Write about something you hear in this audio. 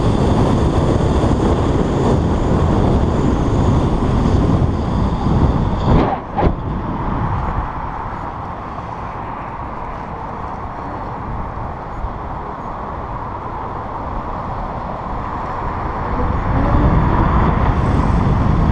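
A vehicle's engine hums steadily while riding.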